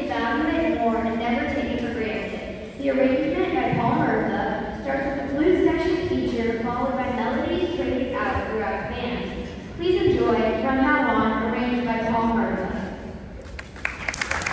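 A concert band plays a lively tune in a large echoing hall.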